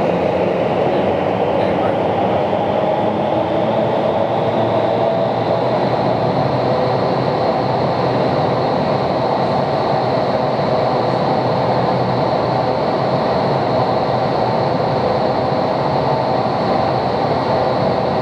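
Powerful wind roars steadily up through a vertical wind tunnel.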